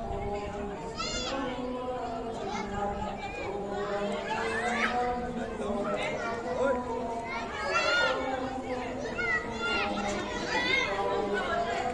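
A young child calls out with high-pitched shrieks nearby.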